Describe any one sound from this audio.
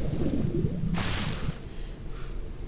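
Water splashes once.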